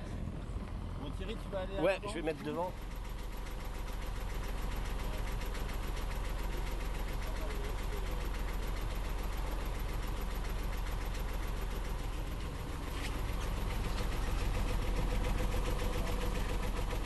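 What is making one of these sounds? A boat's engine chugs steadily close by.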